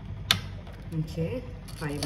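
A metal latch clicks on a closed appliance lid.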